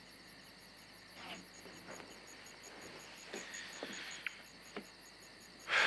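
Footsteps thud softly on a wooden deck.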